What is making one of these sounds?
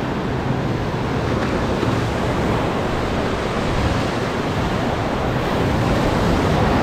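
Waves wash and foam up onto a sandy shore close by.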